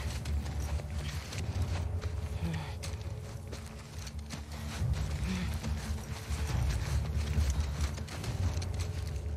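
Tall grass rustles and swishes as someone crawls through it.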